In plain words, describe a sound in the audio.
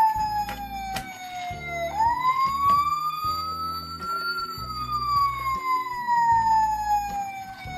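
A small plastic toy door clicks open and shut.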